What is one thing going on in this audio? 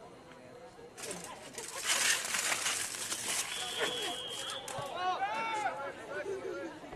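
Spectators cheer and clap from the stands.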